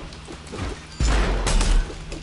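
A blast booms loudly.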